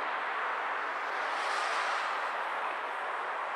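A motorcycle passes close by.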